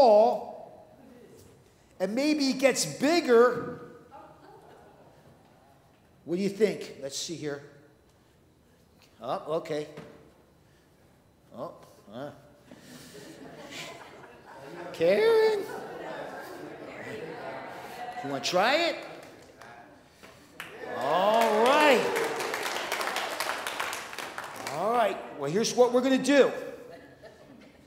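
A man speaks warmly in an echoing room.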